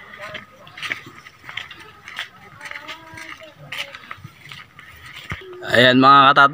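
Footsteps crunch on a grassy dirt path.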